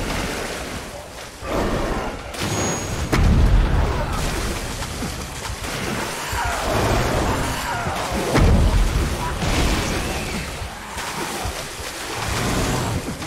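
A monster growls and snarls close by.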